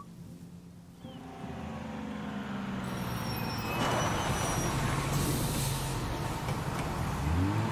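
A large bus engine rumbles as the bus pulls up close by.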